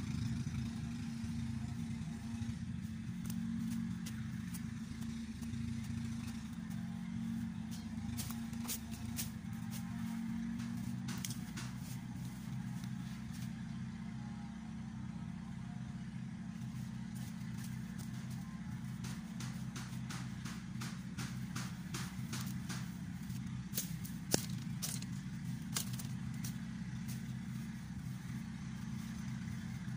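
Leaves and stems rustle and snap as plants are pulled.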